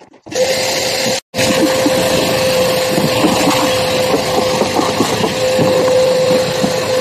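A vacuum cleaner runs with a steady droning hum.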